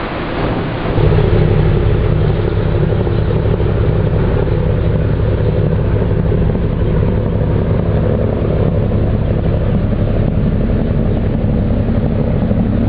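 A boat engine drones low and steady, close by.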